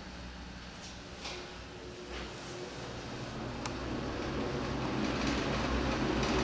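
An exhaust fan whirs steadily overhead and grows louder.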